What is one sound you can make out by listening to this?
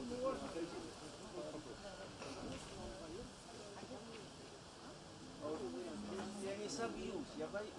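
A man talks with animation nearby, outdoors.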